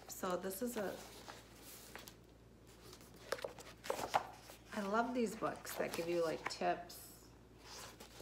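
Book pages flip and rustle.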